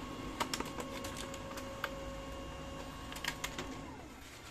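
A printer's mechanism clicks and clacks sharply.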